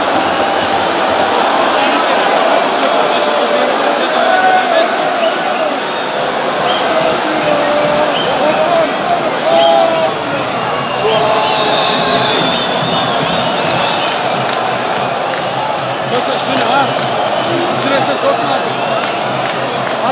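A large stadium crowd roars, chants and whistles all around, outdoors.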